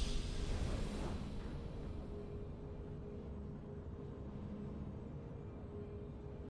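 A triumphant victory fanfare swells and then fades.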